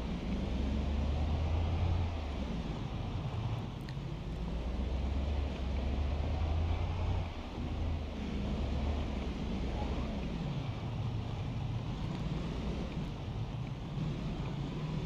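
A van engine hums steadily as it drives along.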